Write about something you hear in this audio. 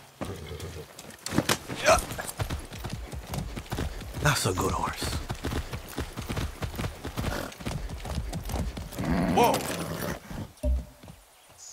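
Hooves clop on a dirt track as a horse trots.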